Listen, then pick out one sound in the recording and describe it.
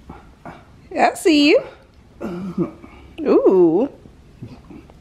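A baby squeals and babbles happily close by.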